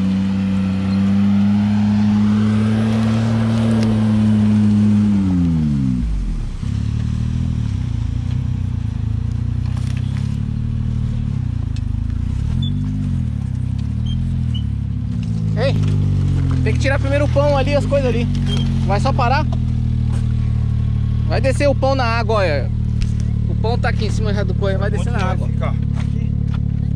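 A car engine idles with a low, steady rumble close by.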